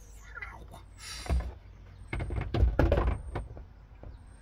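Plastic knocks and rattles as a panel is handled.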